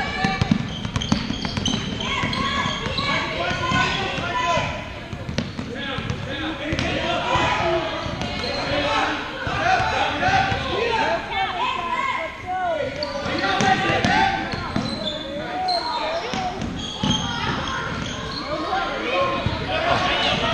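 A crowd of spectators chatters and cheers nearby.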